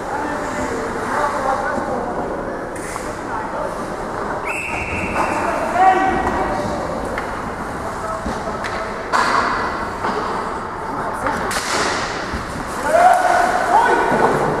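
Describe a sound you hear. Players shout to each other across the rink.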